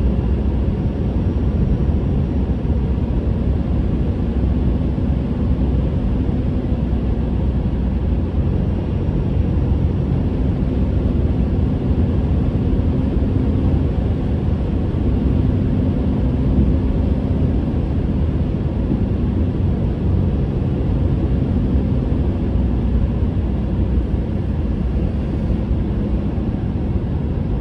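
A car's engine hums steadily from inside the car.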